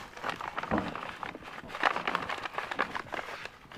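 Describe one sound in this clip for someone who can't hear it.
A padded paper envelope crinkles as a hand handles it.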